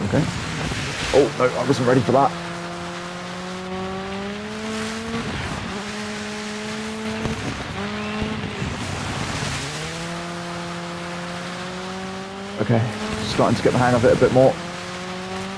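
Flames burst with loud whooshing blasts.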